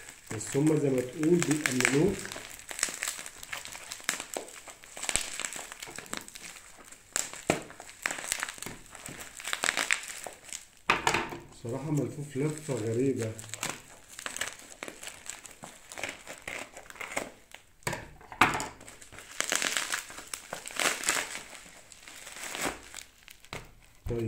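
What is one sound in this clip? Plastic bubble wrap crinkles and rustles in a person's hands.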